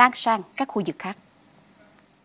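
A woman speaks clearly and calmly into a microphone, like a news presenter.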